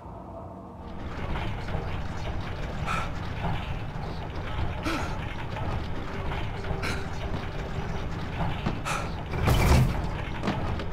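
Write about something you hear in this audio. A heavy metal container scrapes and rumbles as it is pushed.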